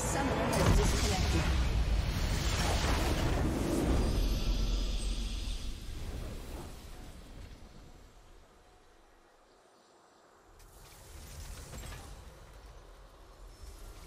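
A triumphant game fanfare swells and then fades.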